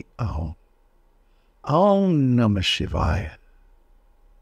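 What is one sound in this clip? An elderly man speaks close by in a drawn-out, expressive voice.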